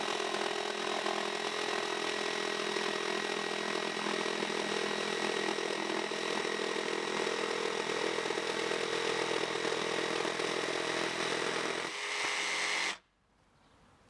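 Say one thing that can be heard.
A jigsaw buzzes loudly as it cuts through wood, then stops.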